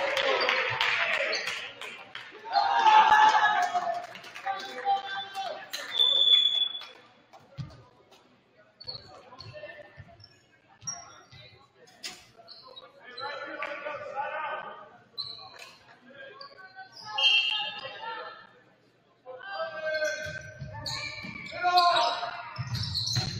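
Young men shout and call to each other across a large echoing gym.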